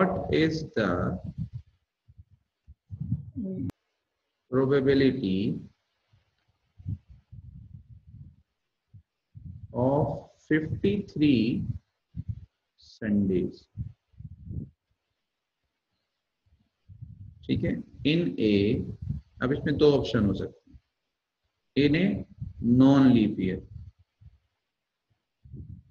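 A man speaks calmly into a close microphone, explaining with pauses.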